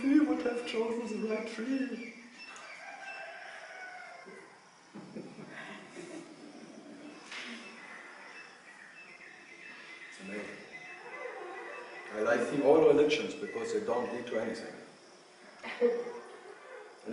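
A middle-aged man speaks calmly and thoughtfully, close by, with pauses.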